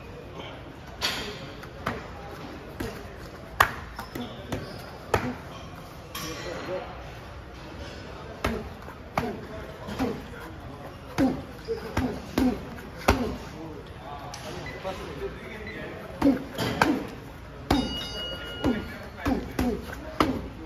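Kicks and punches smack sharply against pads.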